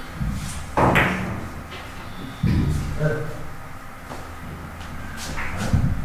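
Billiard balls click against each other and thud off the cushions.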